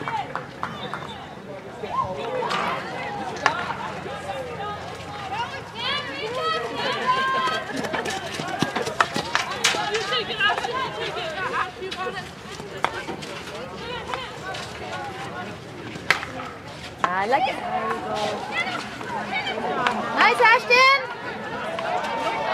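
Hockey sticks clack sharply against a ball.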